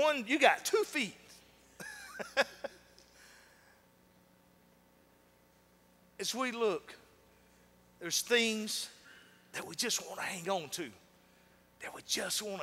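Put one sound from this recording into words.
A man speaks with animation into a microphone in a large room, pausing between phrases.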